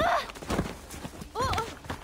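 Dry leaves crunch underfoot as someone scrambles away.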